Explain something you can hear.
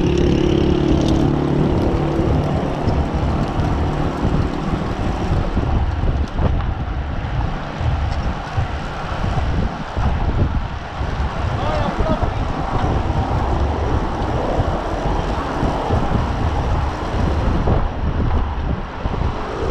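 Wind rushes loudly past, as if riding at speed outdoors.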